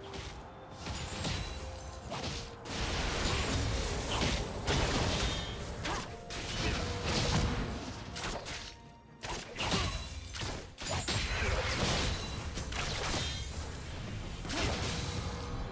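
Spell blasts and weapon hits clash and burst in a fast fight.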